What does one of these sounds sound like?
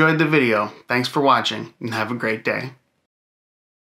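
A young man speaks cheerfully and close to a microphone.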